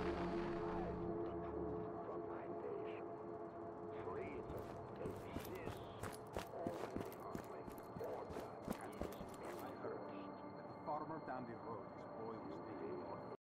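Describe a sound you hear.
Footsteps tap on a hard rooftop.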